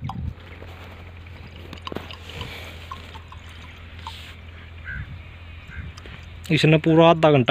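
Liquid gurgles and splashes as it pours from a plastic bottle into a tank.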